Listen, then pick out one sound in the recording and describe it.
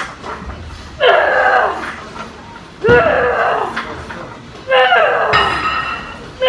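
A woman grunts loudly with strain, close by.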